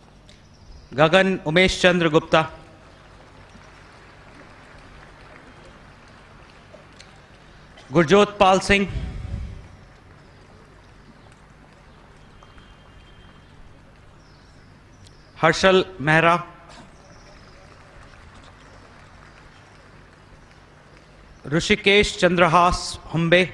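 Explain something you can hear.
A man announces through a loudspeaker in short bursts.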